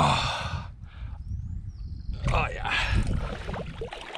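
A man talks breathlessly, close up.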